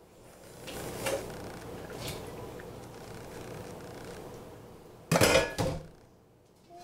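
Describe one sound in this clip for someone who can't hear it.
Dishes clatter and clink in a sink.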